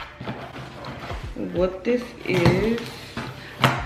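A cardboard box flap rustles open.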